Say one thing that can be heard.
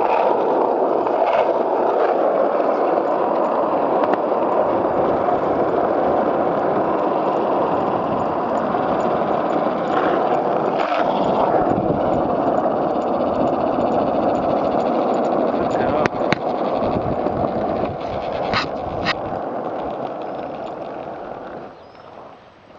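Small wheels roll steadily over a paved path.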